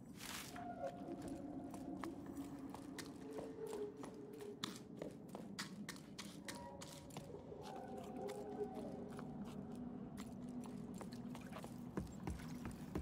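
Footsteps crunch on gravel and stone at a steady pace.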